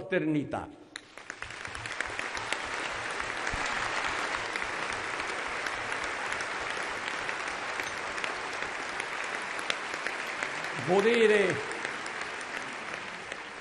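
A large crowd applauds steadily in a large hall.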